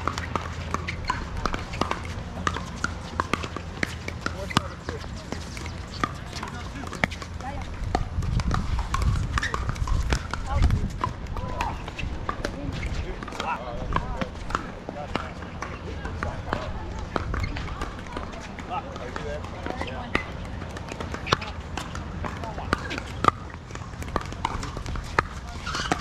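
Paddles strike a plastic ball with sharp pops, outdoors.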